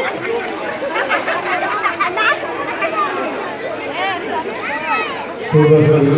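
Young children shout and squeal excitedly nearby.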